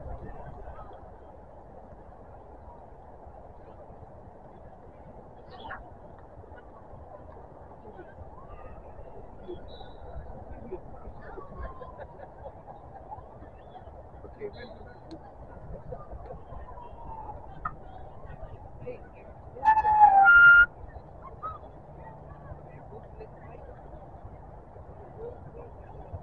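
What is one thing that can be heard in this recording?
Wind blows steadily across an open field outdoors.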